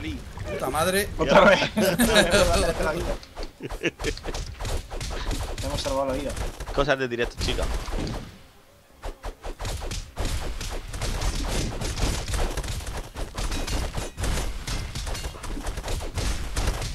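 Game combat sounds clash and crunch rapidly.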